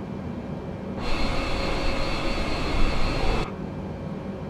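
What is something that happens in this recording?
Jet engines roar loudly from outside an airliner.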